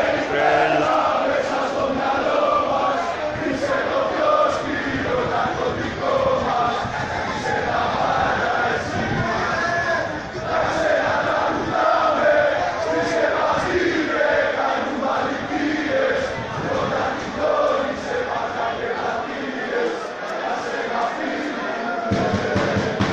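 A crowd of spectators chatters and chants in an open stadium.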